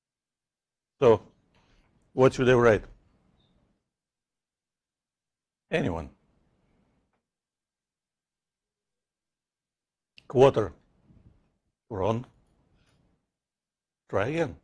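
A man speaks in short, halting phrases with long pauses.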